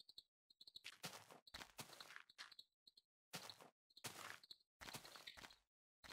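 Soft game clicks sound as items are moved around.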